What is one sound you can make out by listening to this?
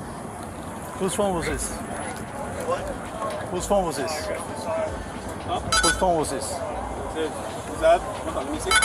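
Men talk outdoors a short way off.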